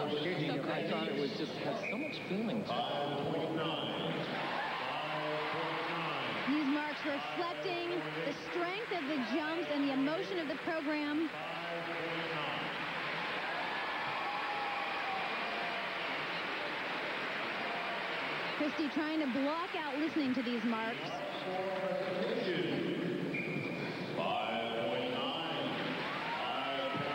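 A large crowd cheers and applauds in an echoing arena.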